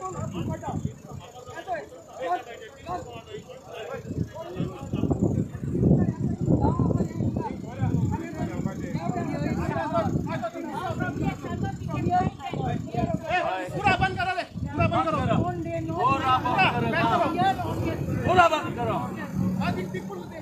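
A crowd of men and women shout and argue loudly outdoors.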